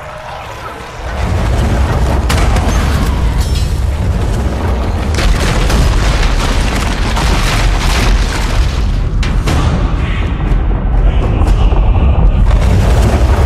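A deep rumbling roar builds and continues.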